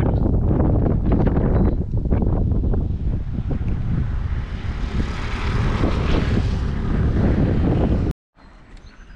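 Wind blows hard and buffets outdoors.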